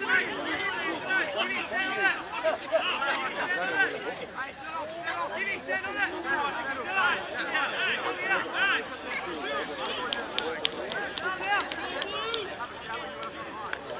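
Several young men argue loudly outdoors, their voices overlapping.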